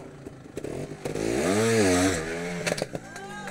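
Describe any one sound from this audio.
A motorcycle engine revs up loudly and falls back.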